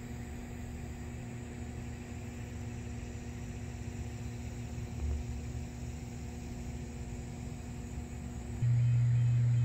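Electrical equipment hums steadily nearby.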